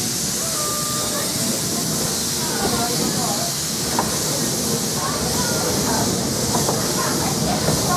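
A steam locomotive rumbles steadily along the track.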